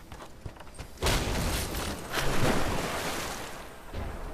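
A body splashes heavily into water.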